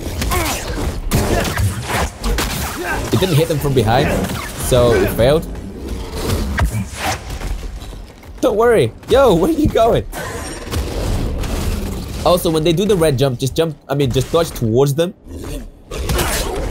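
A large beast growls and snarls.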